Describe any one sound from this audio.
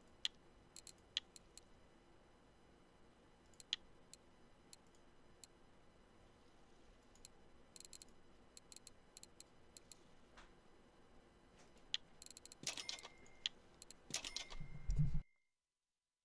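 Soft clicks sound now and then as menu items are selected.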